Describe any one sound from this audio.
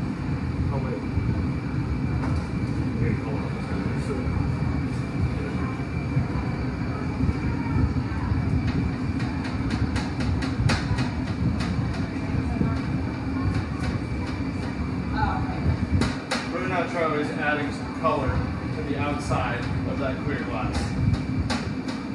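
A furnace roars steadily and loudly.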